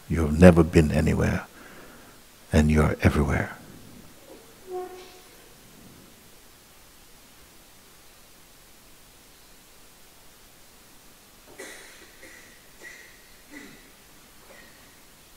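A middle-aged man speaks calmly and close by, in short phrases with long pauses.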